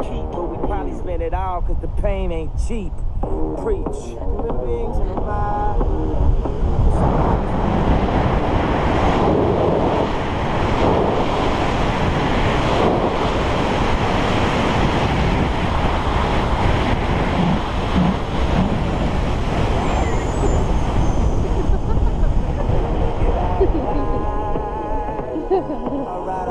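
Wind roars loudly across the microphone.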